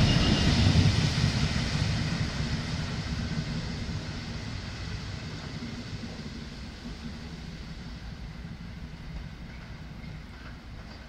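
A Class 66 two-stroke diesel locomotive rumbles away into the distance and fades.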